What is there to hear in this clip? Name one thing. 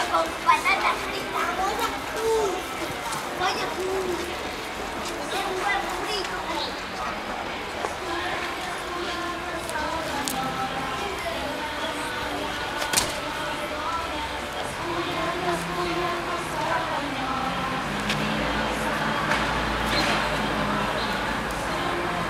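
A group of women sing together outdoors.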